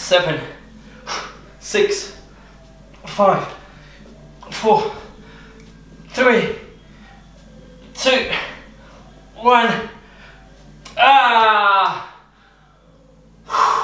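A man exhales with a short, strained grunt at each repetition, close by.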